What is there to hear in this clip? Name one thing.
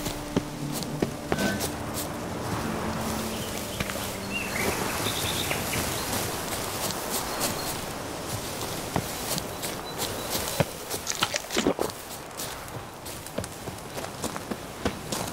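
Footsteps thud quickly as a person runs.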